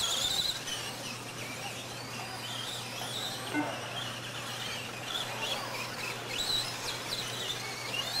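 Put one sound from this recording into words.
Small electric motors whine high and shift in pitch as model cars race.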